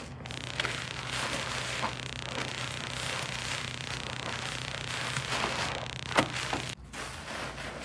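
Wet hands squeeze a bar of laundry soap, squelching in foamy water.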